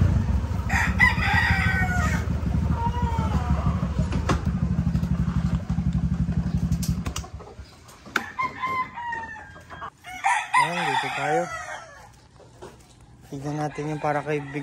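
Roosters crow repeatedly, near and far.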